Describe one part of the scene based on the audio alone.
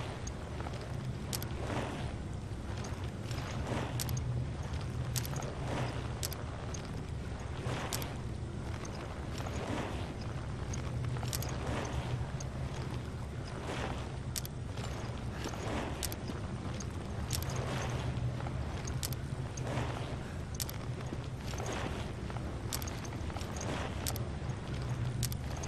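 Soft metallic clicks sound now and then.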